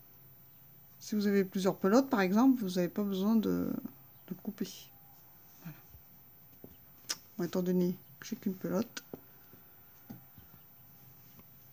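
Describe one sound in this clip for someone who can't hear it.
A crochet hook softly rustles through yarn.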